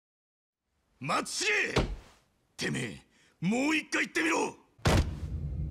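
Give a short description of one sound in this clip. A young man shouts angrily and close by.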